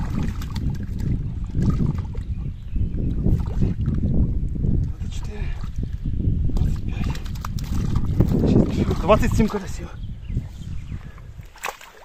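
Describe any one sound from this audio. Grass rustles as fish are picked up by hand.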